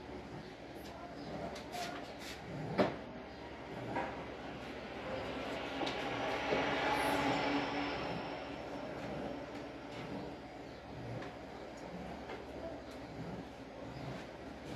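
Dishes and pots clink and knock as they are handled.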